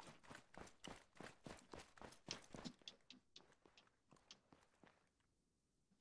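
Footsteps tap quickly on hard concrete.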